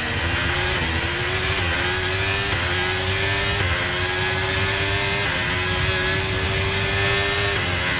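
A racing car engine roars at high revs, its pitch rising and dropping sharply with each gear change.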